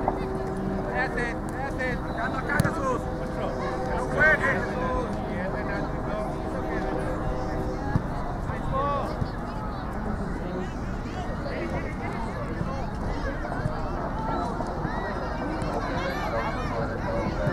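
Spectators cheer and call out from the sideline.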